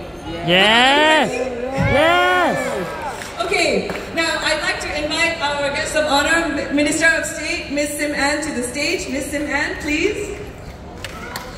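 A woman sings into a microphone through loudspeakers outdoors.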